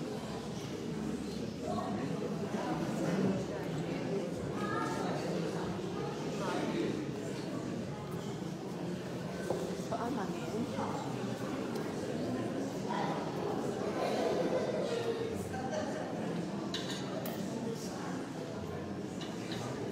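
An elderly woman speaks calmly nearby in an echoing room.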